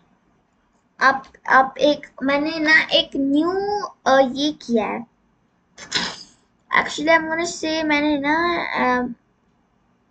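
A young girl speaks with animation, close to a computer microphone.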